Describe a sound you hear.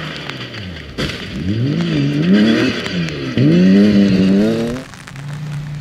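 A rally car engine revs up and down as a car slides through a corner.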